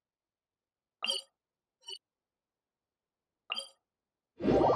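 Short electronic menu chimes sound a few times.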